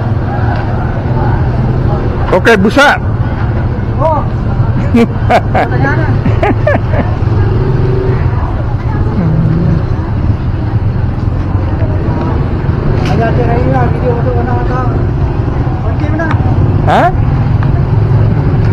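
Crowd chatter fills an outdoor market.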